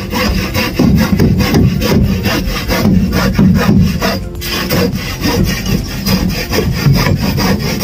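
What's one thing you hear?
A hand saw cuts through wood in quick, steady strokes.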